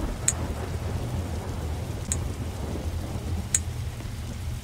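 A short, bright game chime pops several times.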